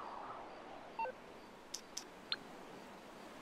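A phone beeps softly a few times.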